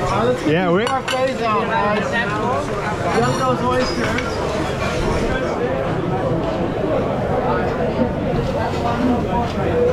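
Ceramic plates clink down onto a stone counter.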